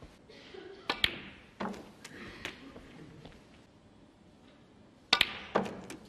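Snooker balls knock together with sharp clicks.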